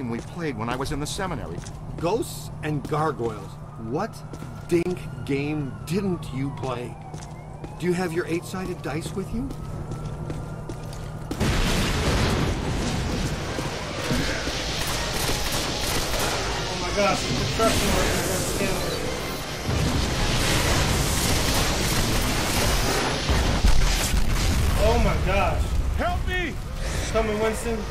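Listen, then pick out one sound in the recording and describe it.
A young man talks with animation into a microphone, close by.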